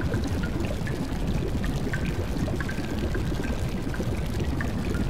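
Water rushes steadily with a low rumble.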